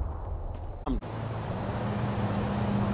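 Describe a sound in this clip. A diesel train engine rumbles steadily nearby.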